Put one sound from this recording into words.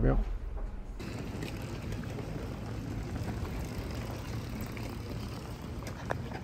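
Motorcycle engines idle outdoors.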